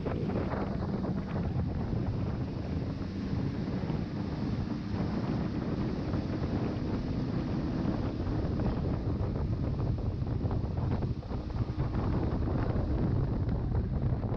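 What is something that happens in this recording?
Water churns and splashes loudly behind a boat.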